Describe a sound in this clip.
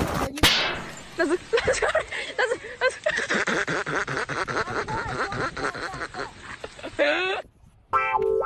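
Young men laugh and shout outdoors.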